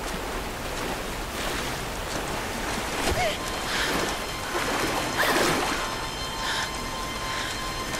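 Water splashes heavily as a young woman wades through a strong current.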